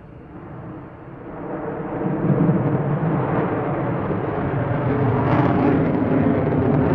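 A jet engine roars overhead, growing louder.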